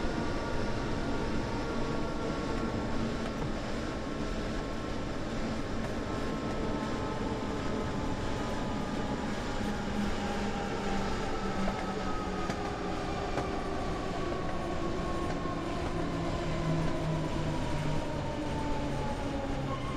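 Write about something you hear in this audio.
Train wheels rumble and clatter over the rails.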